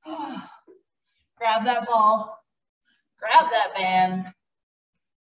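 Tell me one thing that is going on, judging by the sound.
A woman speaks with animation through a microphone, in short bursts.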